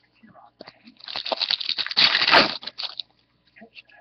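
A foil pack crinkles and tears open.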